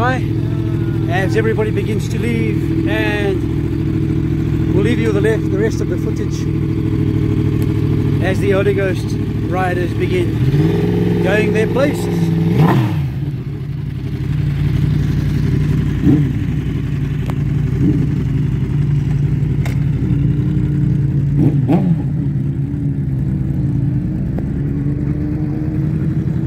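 A motorcycle engine idles with a deep, steady rumble close by.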